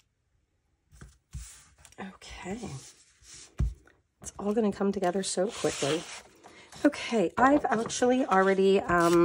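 Sheets of paper rustle and slide.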